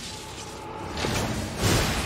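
Metal scrapes and sparks grind sharply.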